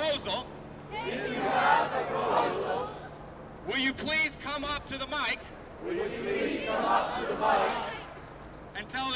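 A large crowd repeats phrases loudly in unison.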